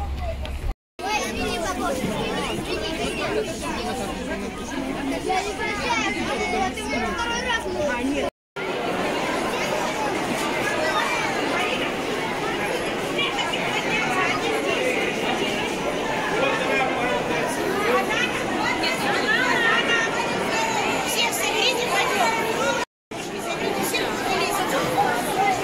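A crowd of children and adults chatter loudly in a large echoing hall.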